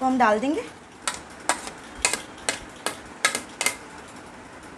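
Pieces of meat and onion drop into a metal pot with clattering thuds.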